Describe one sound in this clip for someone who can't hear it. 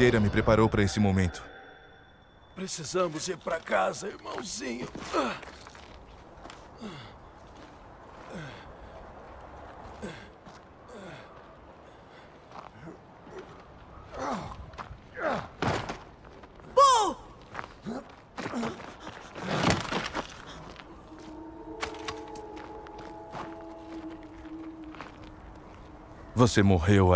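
A man speaks in a strained, weak voice close by.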